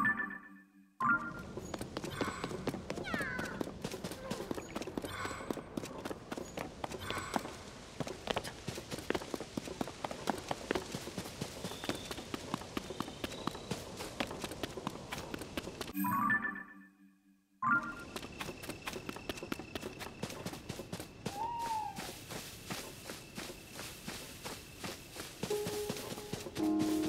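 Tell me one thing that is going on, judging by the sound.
Quick footsteps run over stone and grass.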